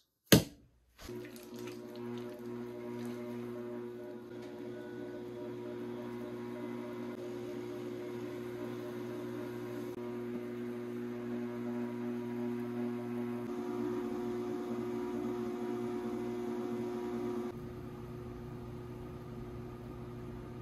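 A potter's wheel motor hums steadily.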